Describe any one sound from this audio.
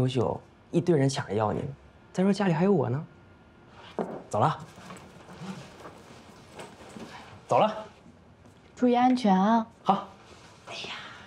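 A young woman speaks warmly and close by.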